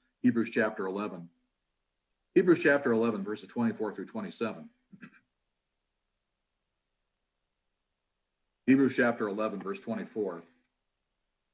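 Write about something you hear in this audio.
An older man speaks calmly and slowly into a close microphone, with long pauses.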